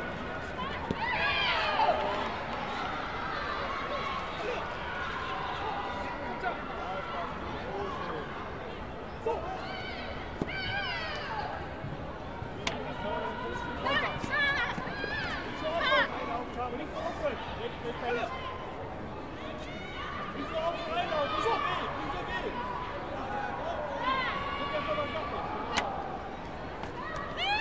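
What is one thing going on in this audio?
A crowd murmurs and calls out in a large echoing hall.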